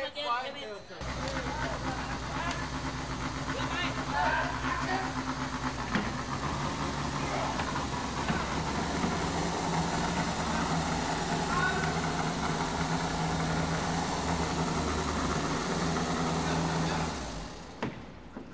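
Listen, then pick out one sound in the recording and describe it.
A boat engine starts and runs with a loud steady roar.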